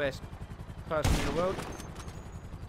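A rifle fires a single loud shot.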